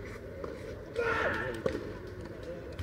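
Two young players talk briefly to each other nearby.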